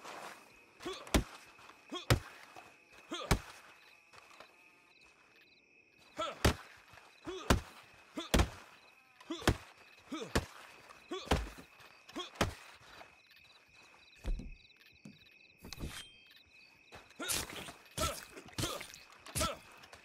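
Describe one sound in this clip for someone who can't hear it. Heavy thuds and cloth rustles sound again and again, close by.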